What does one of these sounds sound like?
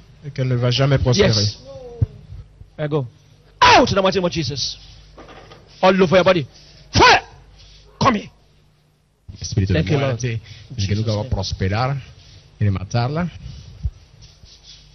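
A man speaks loudly and forcefully into a microphone.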